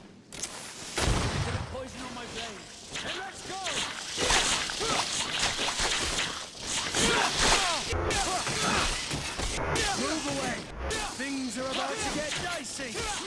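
Creatures screech and snarl nearby.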